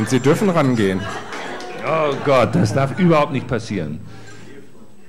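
A middle-aged man speaks calmly into a microphone, heard through a loudspeaker.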